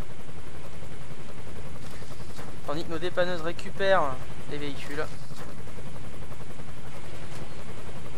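A truck engine idles with a low, steady hum.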